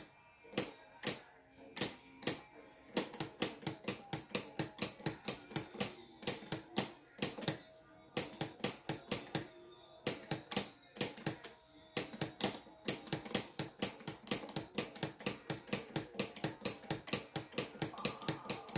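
Rock music with pounding drums plays through a television speaker.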